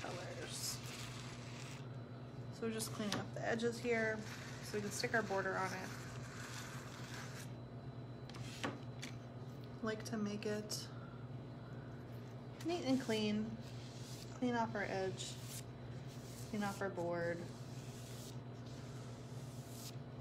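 A scraper smooths icing on a cake.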